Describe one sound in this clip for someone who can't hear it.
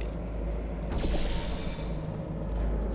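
A sci-fi energy gun fires with a sharp electric zap.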